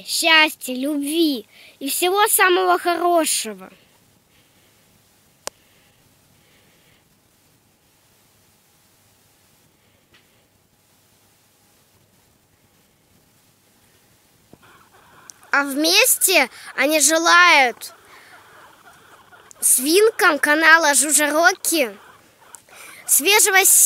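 A guinea pig squeals loudly in repeated high wheeks.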